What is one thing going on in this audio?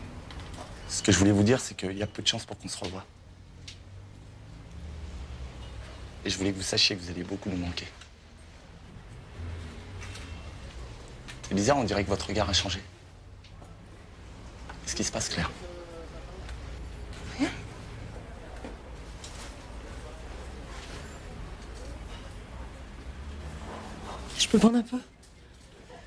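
A young man speaks close by in short bursts.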